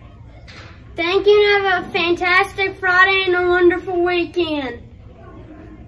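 A boy sings loudly and with a drawn-out voice, close to a microphone.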